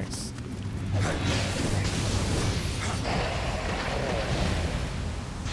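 Magical flames burst and roar.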